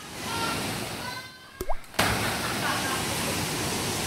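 A man splashes into deep water.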